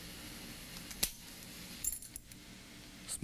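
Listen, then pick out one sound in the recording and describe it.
A fishing reel clicks as a hand handles it.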